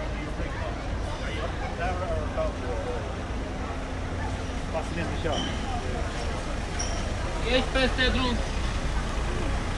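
Men and women talk casually nearby as they walk past.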